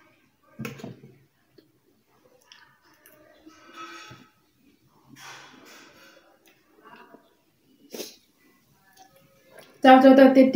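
A woman slurps and chews noodles close by.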